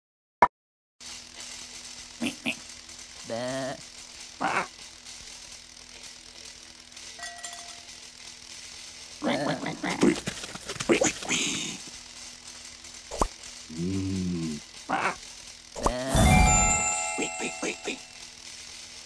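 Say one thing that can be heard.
Playful game sound effects chime and pop.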